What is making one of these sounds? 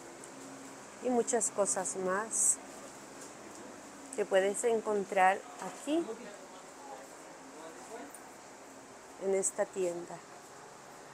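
A woman talks close by in short, lively bursts.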